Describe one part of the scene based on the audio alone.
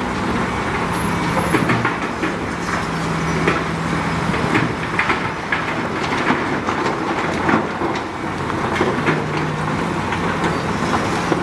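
Rocks scrape and clatter under a bulldozer blade.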